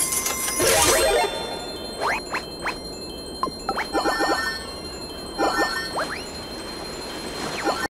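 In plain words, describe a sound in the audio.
Game sound effects chime and swoosh in quick bursts.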